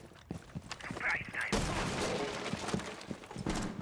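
A gun is swapped with a short metallic clatter.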